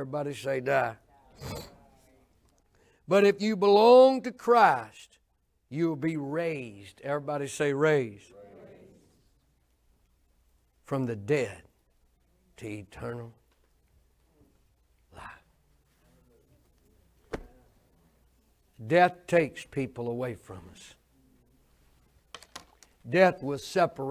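An older man speaks with animation into a microphone, in short bursts with pauses.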